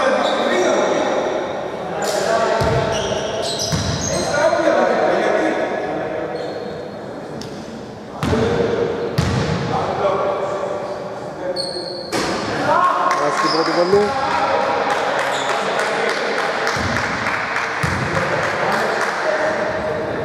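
Voices of players and onlookers echo around a large hall.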